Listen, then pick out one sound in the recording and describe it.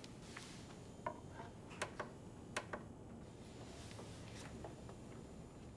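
Small plastic clicks and knocks sound close by.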